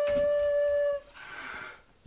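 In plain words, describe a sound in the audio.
A recorder sounds a single steady, shrill note.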